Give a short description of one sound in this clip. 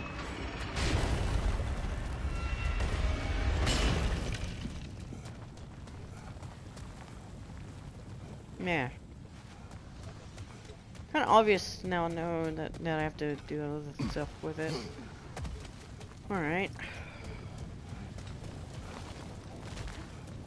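Heavy footsteps crunch on stone.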